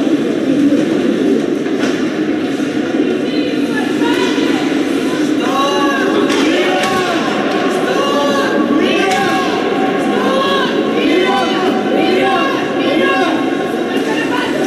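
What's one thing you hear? Skates scrape and swish across the ice in a large echoing rink.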